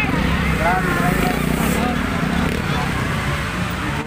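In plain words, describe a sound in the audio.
A dirt bike engine revs loudly as it passes close by.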